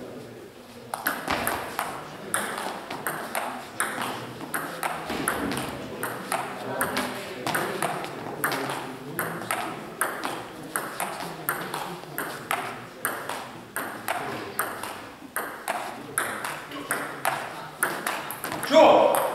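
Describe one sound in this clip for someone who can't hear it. A table tennis ball clicks quickly back and forth between paddles and table.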